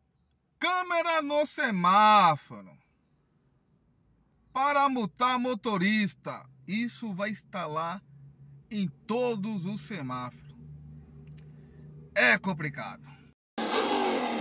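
A man sings with feeling close to a microphone.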